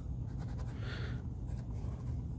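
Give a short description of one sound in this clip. A marker squeaks across paper.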